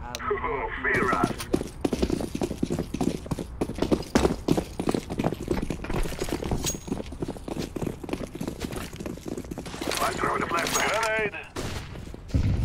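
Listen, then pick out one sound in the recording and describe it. Quick footsteps thud and tap on hard ground.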